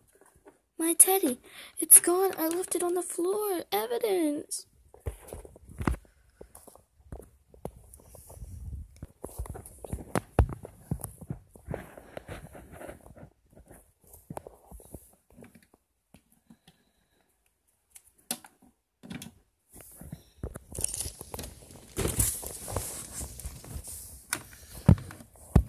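Small plastic toys clack and tap against a hard surface.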